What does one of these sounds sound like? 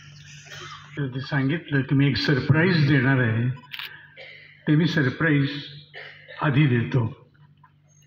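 An elderly man speaks calmly into a microphone over a loudspeaker.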